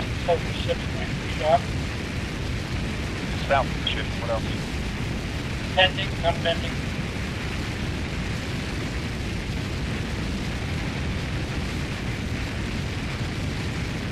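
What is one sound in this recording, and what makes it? A Spitfire's V12 piston engine drones in flight at cruising power.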